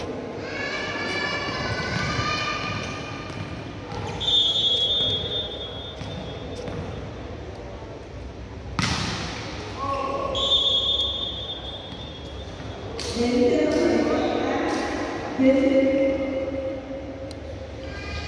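Young men shout and cheer excitedly across the hall.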